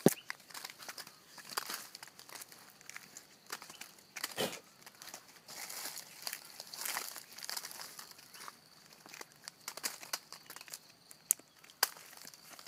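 A stick scrapes and pokes at crumbling rotten wood inside a tree trunk.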